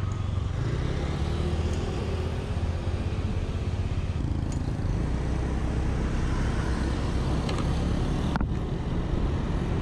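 Other motorbikes pass nearby.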